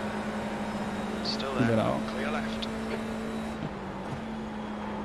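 A racing car engine drones at a steady pitch.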